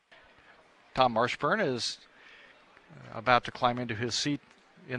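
A man speaks calmly over a radio headset.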